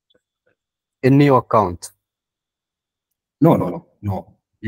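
A man speaks in short phrases over an online call.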